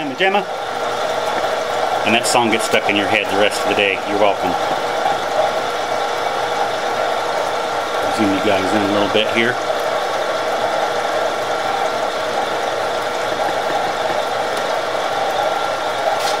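A milling machine hums and grinds steadily as it cuts metal.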